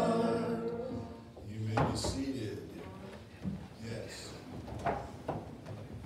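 People sit down on creaking wooden pews.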